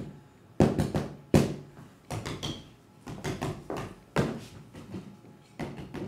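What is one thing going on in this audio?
Drumsticks beat on a large drum in quick, uneven strokes.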